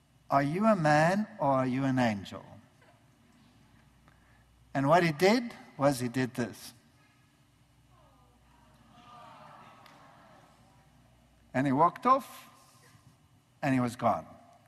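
An older man speaks with animation through a microphone, in bursts with pauses, in a large echoing hall.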